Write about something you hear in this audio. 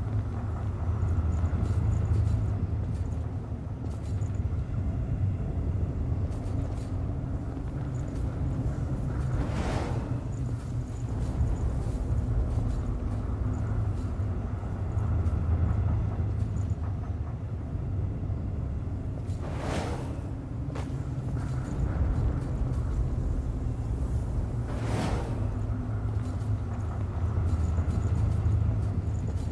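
Footsteps patter quickly over stone.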